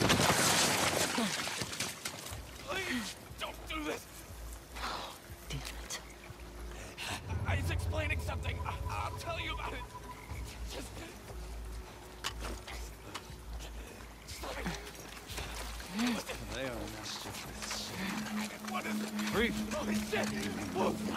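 Footsteps splash and crunch through shallow water and wet ground.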